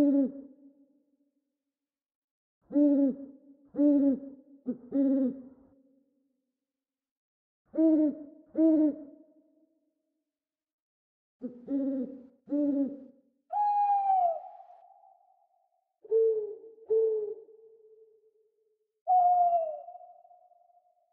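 An owl hoots in short, deep calls, pausing between them.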